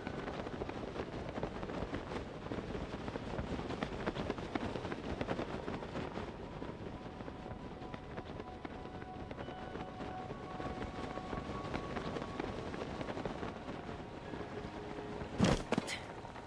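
Wind rushes steadily past while gliding through the air.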